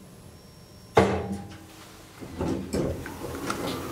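Elevator doors slide open with a clunk.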